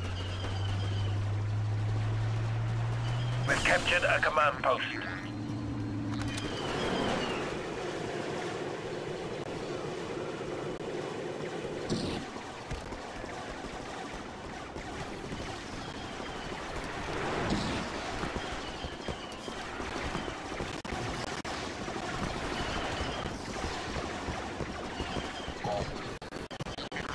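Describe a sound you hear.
Footsteps crunch on snow as a soldier runs.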